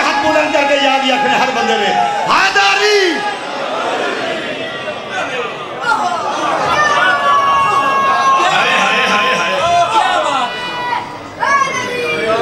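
A young man chants loudly through a microphone with echo.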